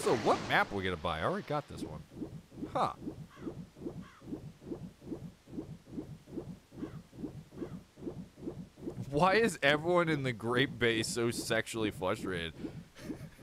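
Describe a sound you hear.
Water splashes as a game character swims.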